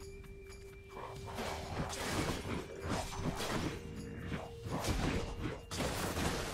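Game combat sounds clash and thud in quick bursts.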